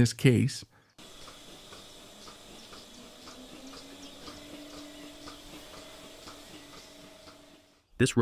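A milking machine hums and whirs steadily indoors.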